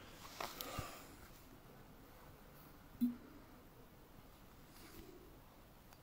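A man speaks a few quiet words close to a phone microphone.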